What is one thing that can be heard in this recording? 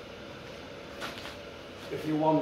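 Footsteps scuff on a concrete floor.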